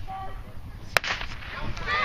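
A starting pistol fires once.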